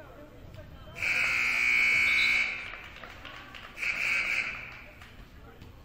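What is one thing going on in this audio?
A referee's whistle blows sharply twice.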